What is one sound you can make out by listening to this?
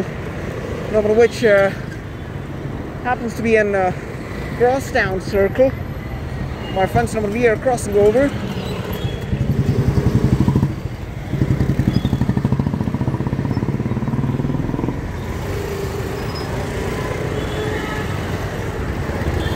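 Motor scooters and motorbikes ride past with a buzzing engine hum.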